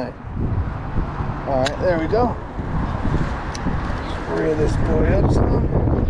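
A fishing reel clicks as it is handled.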